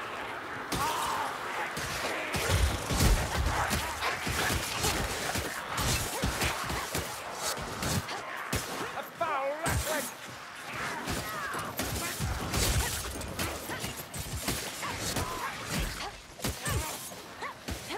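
Blades slash and strike flesh in quick, repeated hits.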